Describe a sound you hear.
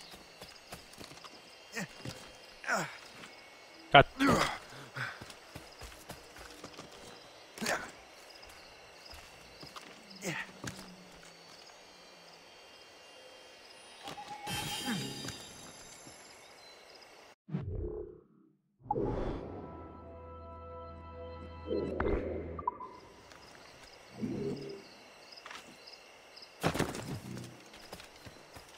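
Footsteps run through grass and brush.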